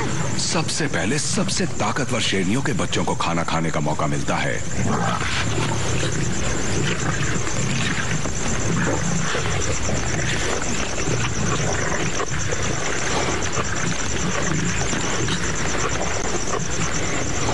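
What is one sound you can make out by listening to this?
Lions growl and snarl while feeding.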